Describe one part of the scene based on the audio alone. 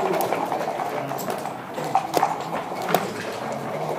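Plastic checkers click as they are moved on a wooden board.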